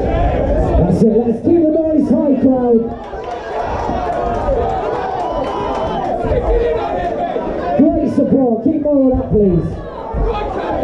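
Men in the crowd shout loudly to the fighters.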